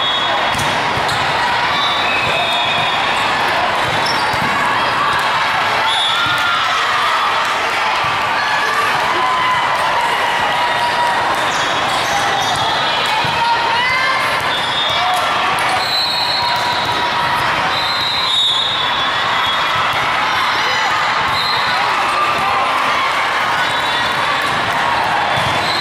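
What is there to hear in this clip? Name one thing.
Many voices chatter and echo throughout a large hall.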